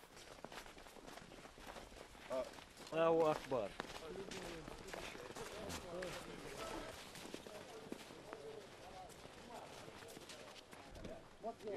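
Boots crunch on snow as a group of men walks.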